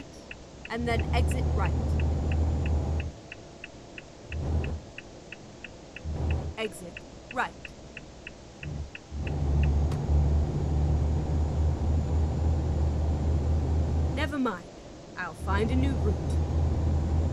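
A truck engine rumbles low and drones on.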